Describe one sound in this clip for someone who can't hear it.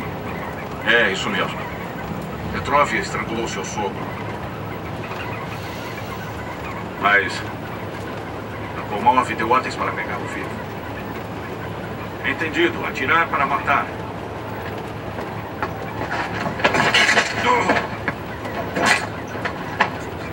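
A bus engine hums steadily as the bus drives along.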